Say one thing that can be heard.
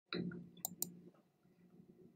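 A man speaks briefly and quietly over an online call.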